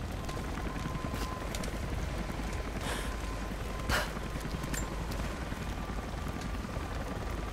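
A fire crackles and pops nearby.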